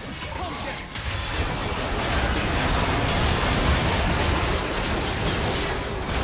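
Magic spells burst and crackle in a fierce battle.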